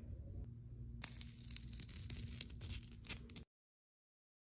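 A wax strip rips off skin with a sharp tearing sound.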